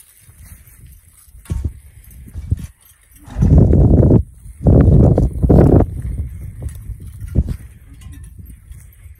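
A horse-drawn plow scrapes and drags through soil.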